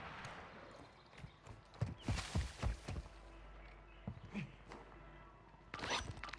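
Footsteps thud across a rooftop.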